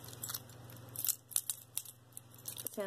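Metal rings clink softly against each other as they are handled.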